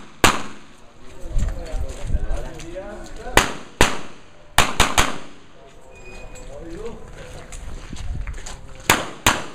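Footsteps crunch on gravel between the bursts of shots.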